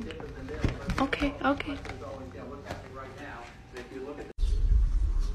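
A cat meows up close.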